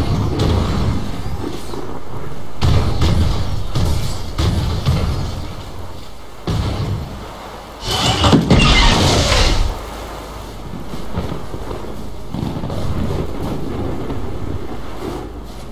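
Wind howls outdoors, blowing snow.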